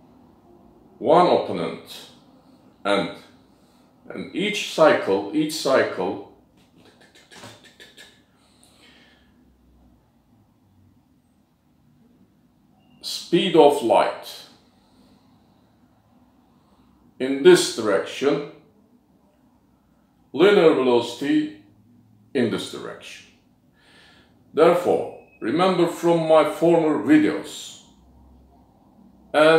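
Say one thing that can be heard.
An older man speaks calmly and close by, in bursts with pauses.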